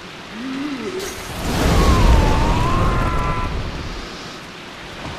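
A burst of fire roars loudly.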